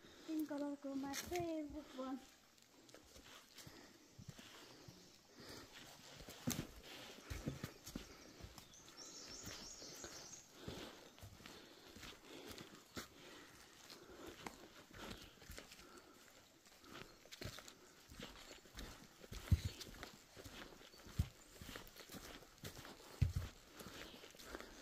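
Footsteps crunch on dry leaves along a dirt trail.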